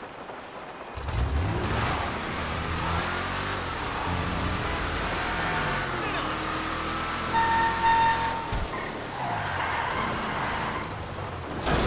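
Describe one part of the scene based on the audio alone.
An off-road buggy engine revs and roars.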